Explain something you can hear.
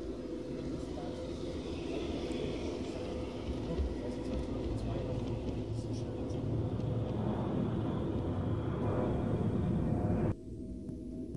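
A garden-scale model train rolls past on metal track, its wheels rumbling and clicking over the rail joints.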